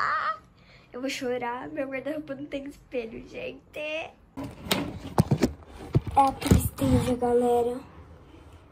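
A young girl speaks animatedly, close by.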